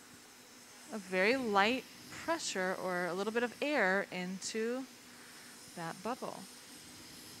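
A woman speaks with a lively voice nearby.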